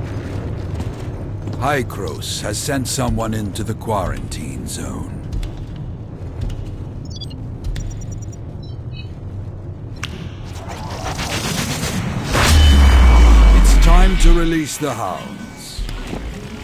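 A man speaks in a deep, calm voice.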